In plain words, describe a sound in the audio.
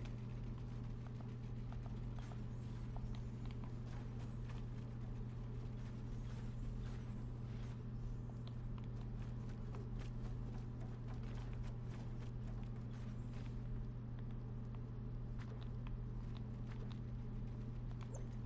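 Building pieces snap into place with quick wooden clacks and thuds.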